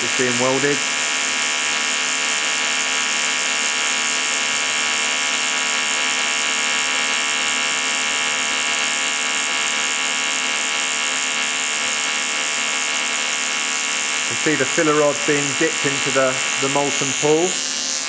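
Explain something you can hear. An electric welding arc crackles and hisses steadily.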